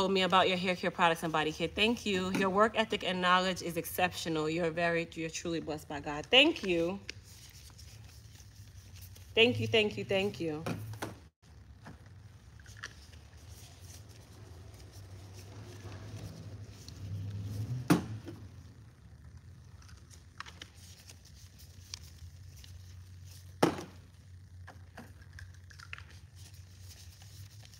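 Plastic gloves rustle and crinkle.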